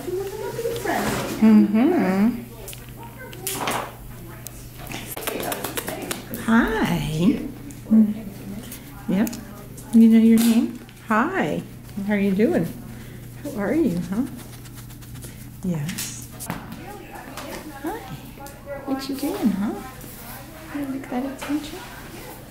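A woman talks in a high, cooing voice close by.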